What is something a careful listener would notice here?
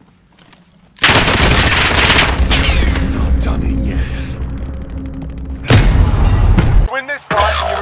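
Loud explosions and gunfire hit nearby.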